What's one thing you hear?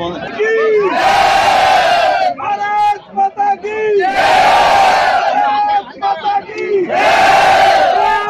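A large crowd shouts slogans together loudly outdoors.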